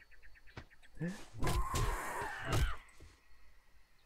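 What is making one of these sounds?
Vultures screech overhead.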